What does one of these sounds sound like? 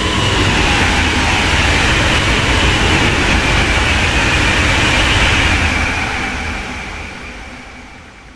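A high-speed train rushes past close by with a loud roar, then fades away.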